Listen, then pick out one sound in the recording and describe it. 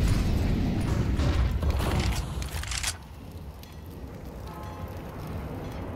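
Flames from an incendiary grenade roar and crackle.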